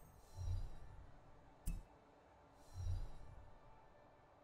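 A game menu makes soft low whooshes and a sharp click as options are picked.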